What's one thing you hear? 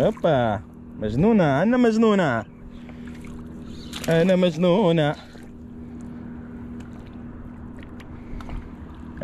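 Water laps gently against rocks.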